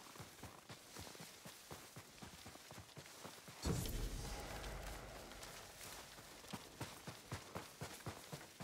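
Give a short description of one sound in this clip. Footsteps rustle steadily through tall grass.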